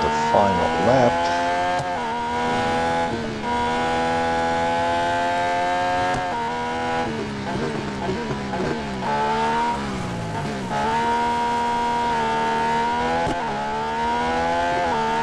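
A racing car engine screams at high revs, shifting up through the gears.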